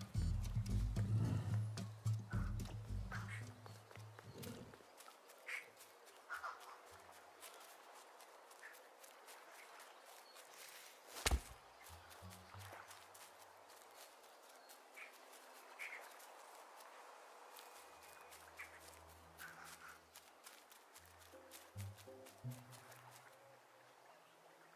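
Light footsteps patter quickly along the ground.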